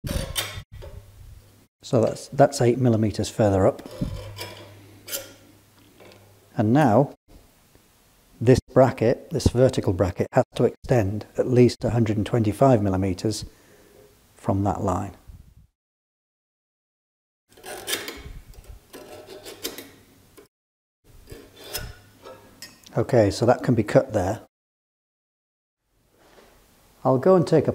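A middle-aged man explains calmly, close to a microphone.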